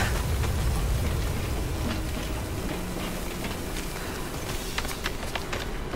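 Hands and boots knock on the rungs of a wooden ladder.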